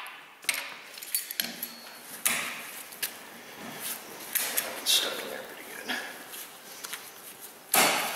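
Pliers click and scrape against metal.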